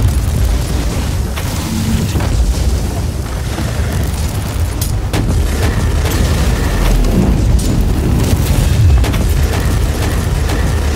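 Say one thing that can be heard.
Gunfire rattles rapidly in a game.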